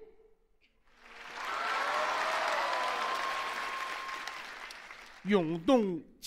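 An audience laughs and applauds in a large hall.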